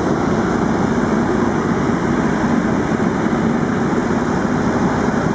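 A small plane's propeller engine drones loudly and steadily from inside the cockpit.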